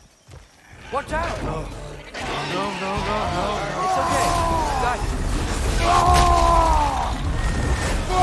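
Weapons clash and bodies thud in a brawl.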